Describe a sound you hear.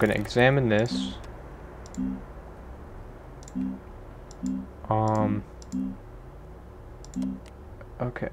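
Short electronic beeps sound as menu options are clicked through.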